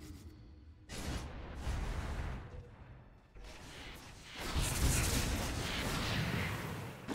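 Game spell effects whoosh and crackle in bursts during a fight.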